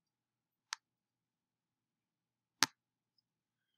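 A computer mouse clicks sharply a couple of times.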